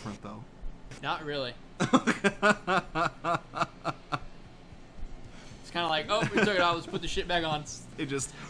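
A second man talks and laughs close to a microphone.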